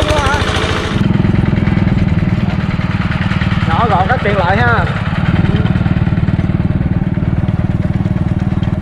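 A tractor engine chugs steadily as it drives along.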